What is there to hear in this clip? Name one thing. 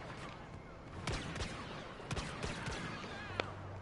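A blaster rifle fires rapid sharp shots.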